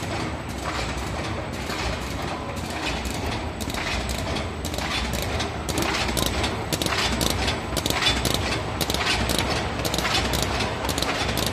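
A packaging machine runs with a steady clatter and rapid mechanical clicks.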